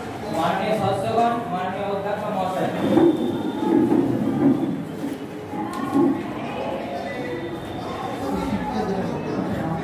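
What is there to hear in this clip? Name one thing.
Young people murmur and talk in a room.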